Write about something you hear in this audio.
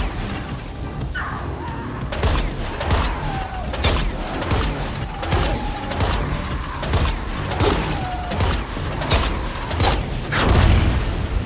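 Explosions roar with crackling fire.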